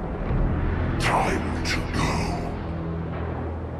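A man speaks in a low, deep voice, close by.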